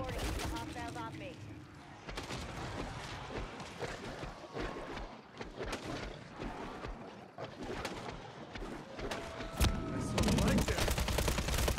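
Zombies growl and snarl up close.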